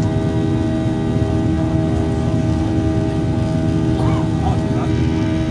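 A jet engine roars steadily with a low droning hum.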